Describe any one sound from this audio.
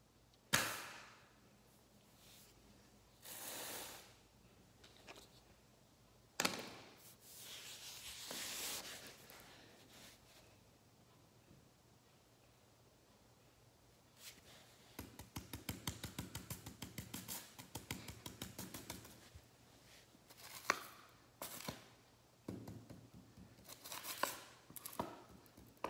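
A plastic toy is set down on paper with a soft knock.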